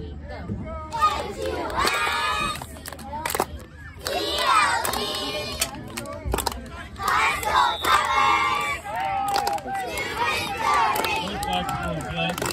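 Young girls chant loudly in unison outdoors.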